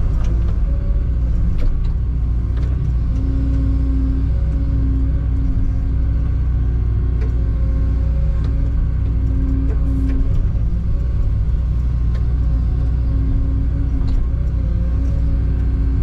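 Hydraulics whine in rising and falling tones.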